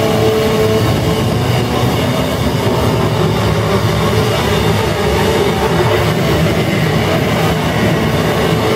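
Loud live band music plays with pounding drums.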